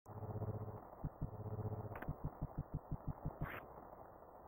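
Quick, even footsteps tap in a video game.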